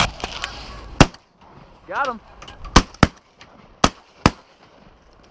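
Shotguns fire several loud, sharp blasts in quick succession outdoors.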